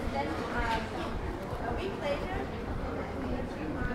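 Distant voices of men and women chat outdoors.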